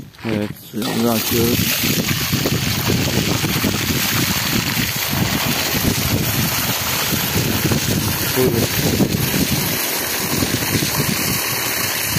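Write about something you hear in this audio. Water gushes hard from a hose and splashes onto the ground.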